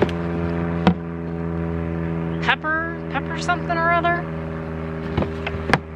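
Shoes knock and thud against each other in a plastic bin.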